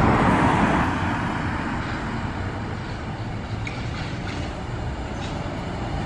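A trolley bus hums as it pulls away along the street.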